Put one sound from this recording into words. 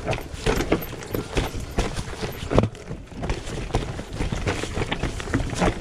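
A bicycle frame and chain rattle and clatter over bumps.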